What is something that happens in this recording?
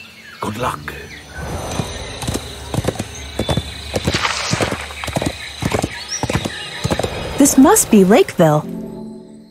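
A horse's hooves clop at a gallop.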